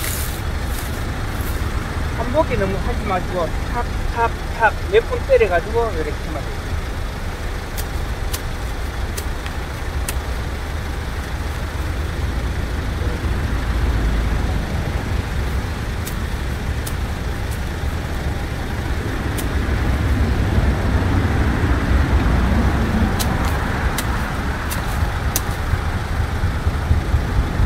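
Dry grass rustles as hands pull at weeds.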